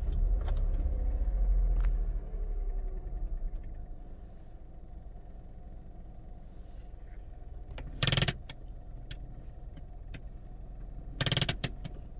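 A small petrol hatchback's engine idles.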